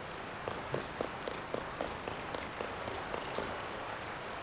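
Footsteps thud quickly on wooden logs.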